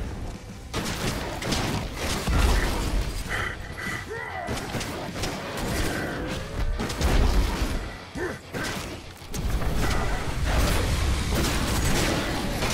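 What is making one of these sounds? Blades clash and slash in quick, sharp hits.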